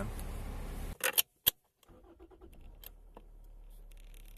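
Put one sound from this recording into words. Car keys jingle and click in an ignition.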